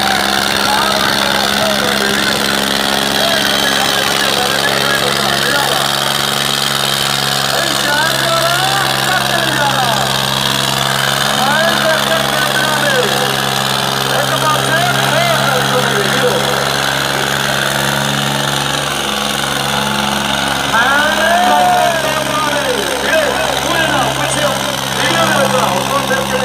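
Two tractor engines roar steadily under heavy strain.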